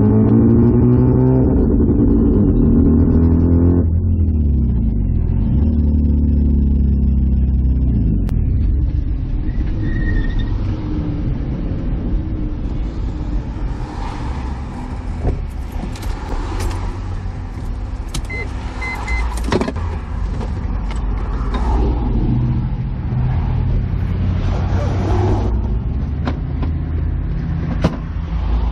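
A car engine rumbles loudly and revs up and down, heard from inside the car.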